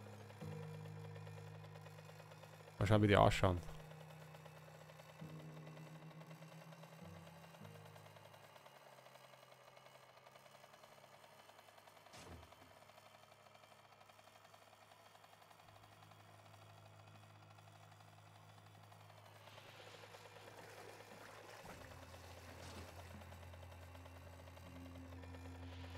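A small cart motor hums steadily as it drives over rough ground.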